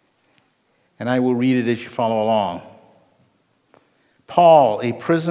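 An older man reads aloud calmly into a microphone.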